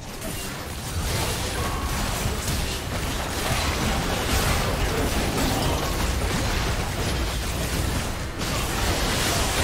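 Magic blasts, whooshes and impacts crash together in a fast video game battle.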